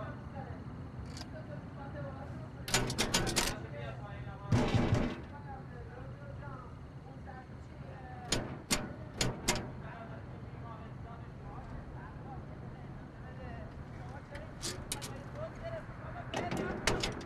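A woman speaks quietly into a phone.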